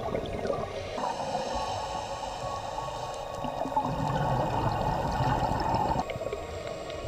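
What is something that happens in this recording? Exhaled air bubbles burble out of a scuba regulator underwater.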